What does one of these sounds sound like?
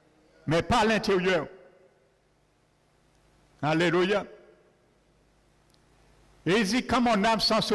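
An elderly man preaches through a microphone in short bursts, in an echoing hall.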